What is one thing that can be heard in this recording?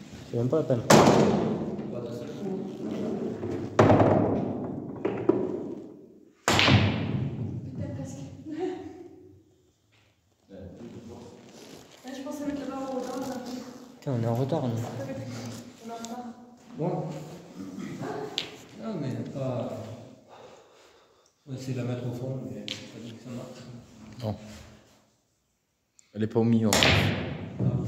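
A pool cue strikes a ball.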